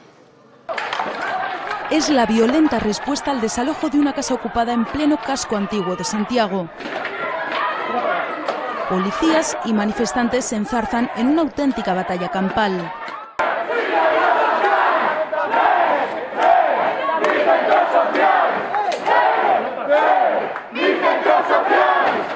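A crowd shouts and screams in a street.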